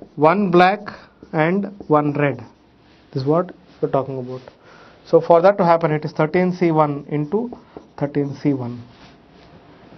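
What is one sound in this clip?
A man speaks calmly and clearly, as if teaching, close to a microphone.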